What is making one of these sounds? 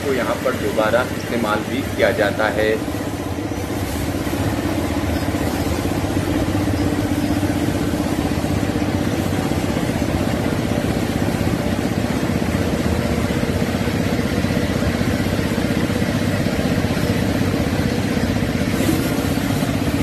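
A train rumbles steadily past close by.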